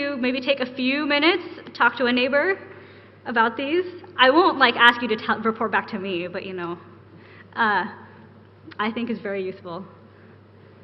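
A woman speaks calmly through a microphone.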